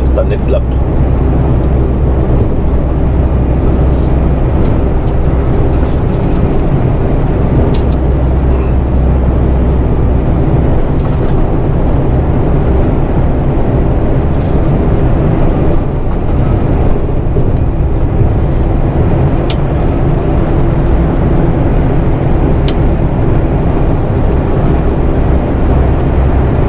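A truck's engine drones steadily from inside the cab.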